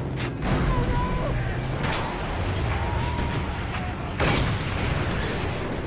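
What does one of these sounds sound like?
Flames crackle and roar from a burning car.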